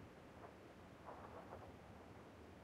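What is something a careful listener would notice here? Footsteps crunch on rough ground.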